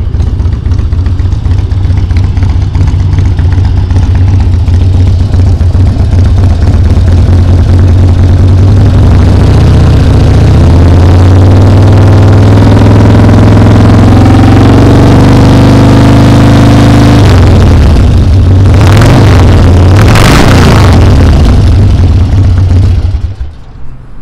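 A motorcycle engine rumbles loudly close by.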